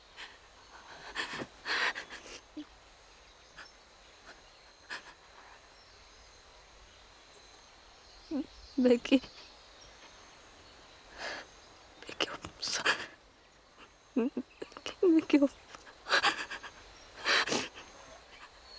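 A young woman sobs with shaky breaths.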